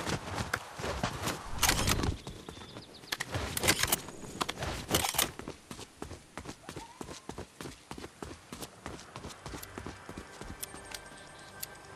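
Footsteps clatter on roof tiles.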